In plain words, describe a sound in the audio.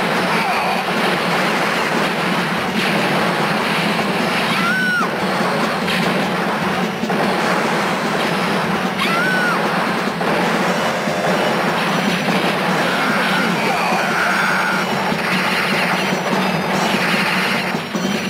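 Upbeat video game music plays throughout.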